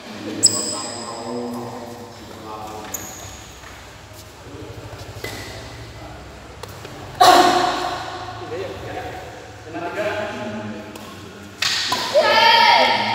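Men talk and call out loudly in a large echoing hall.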